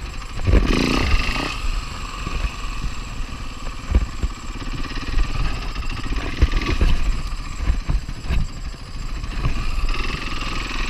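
A dirt bike engine buzzes and revs loudly up close.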